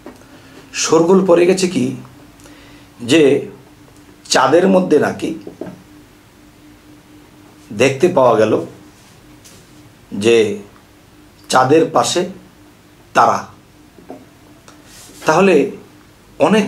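A man speaks with emphasis into a close microphone, in short bursts with pauses.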